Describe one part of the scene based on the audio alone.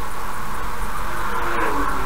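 A truck rushes past in the opposite direction.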